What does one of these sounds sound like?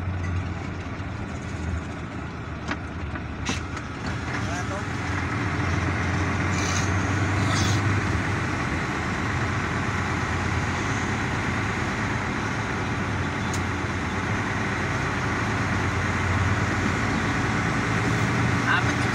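Tyres roll on the road with a steady rushing noise.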